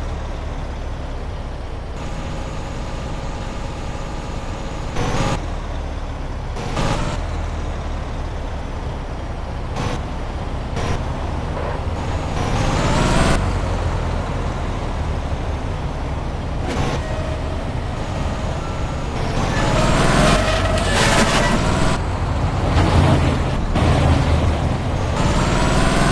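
A truck engine rumbles steadily as the truck drives along.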